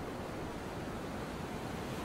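Small waves lap gently at a sandy shore.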